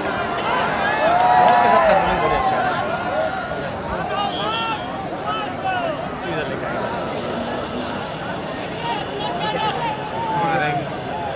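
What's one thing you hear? A large crowd of men chatters and shouts outdoors throughout.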